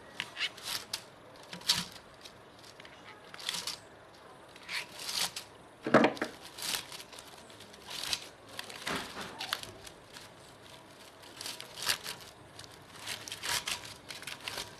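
A hand scrubs a metal motor housing with a stiff brush in short scraping strokes.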